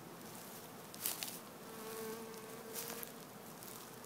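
Wooden hive boxes knock against each other.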